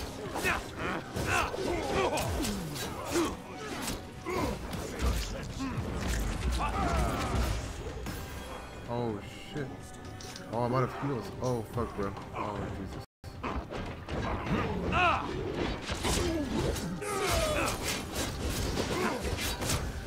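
Swords clash and slash in rapid combat.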